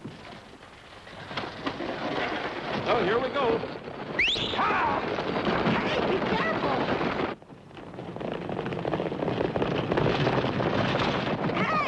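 Horses' hooves pound along a dirt road.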